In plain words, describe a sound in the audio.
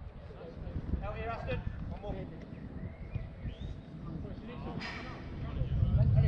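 Men shout to each other across an outdoor football pitch, at a distance.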